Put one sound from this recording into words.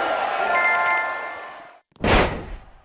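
Loud music plays briefly and then cuts off abruptly.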